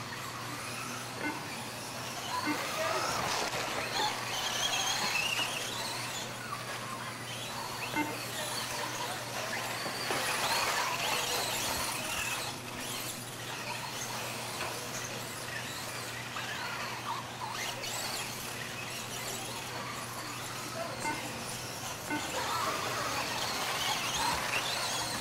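Small electric motors of remote-control cars whine in high, shifting pitches.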